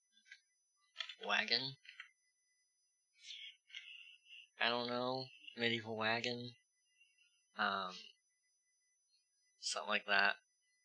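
A young man talks casually and animatedly into a close microphone, in short bursts.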